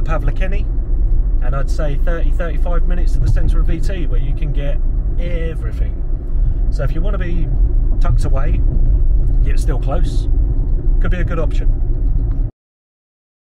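A car engine hums steadily inside the cabin.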